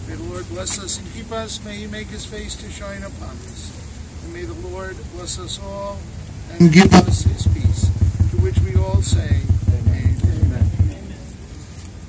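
A man speaks calmly through a microphone outdoors.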